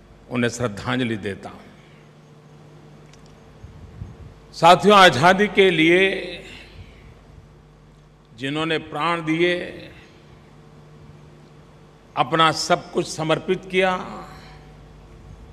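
An elderly man speaks through a microphone in slow, emphatic bursts with pauses between.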